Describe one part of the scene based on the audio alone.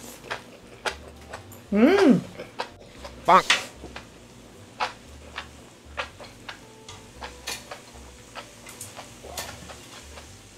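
A young woman chews food close to a microphone with soft, wet mouth sounds.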